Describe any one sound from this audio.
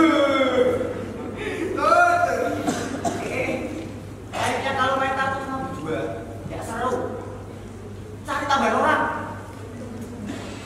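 Two young men talk, heard from a distance in a hall.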